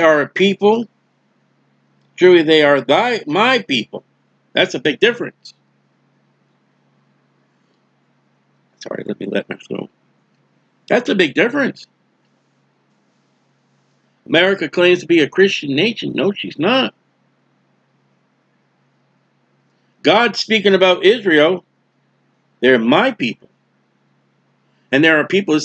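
A middle-aged man speaks calmly and closely into a microphone, in bursts with pauses.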